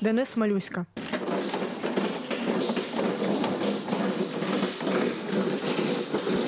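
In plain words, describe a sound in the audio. Liquid pours and splashes from a bottle.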